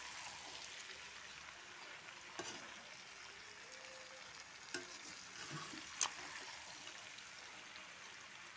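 Vegetables sizzle and fry in a pan.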